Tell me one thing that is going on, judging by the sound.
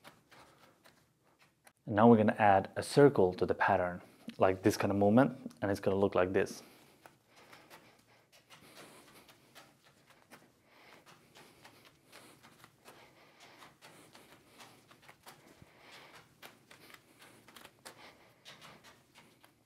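Juggling balls land softly in a man's hands.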